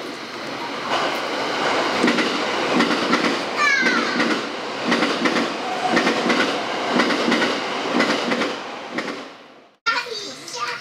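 A train rumbles along the rails with rhythmic clatter.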